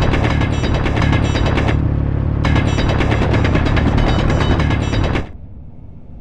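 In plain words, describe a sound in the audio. A hand drill grinds loudly through ice.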